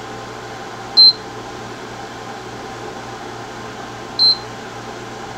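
A cooking hob beeps sharply as a button is pressed.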